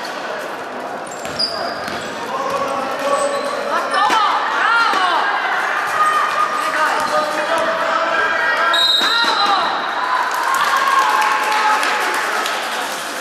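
Girls shout and call out across an echoing hall.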